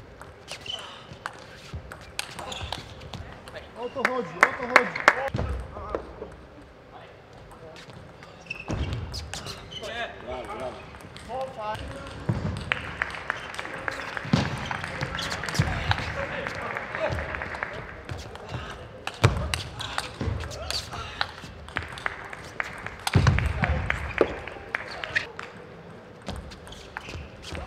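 A table tennis ball clicks sharply back and forth off paddles and the table.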